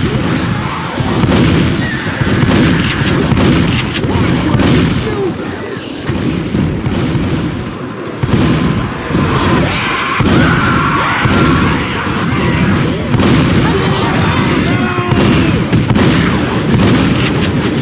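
Shotgun blasts boom repeatedly.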